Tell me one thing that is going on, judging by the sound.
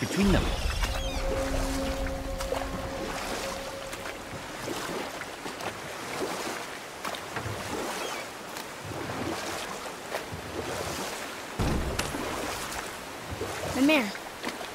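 Oars splash in water as a boat is rowed.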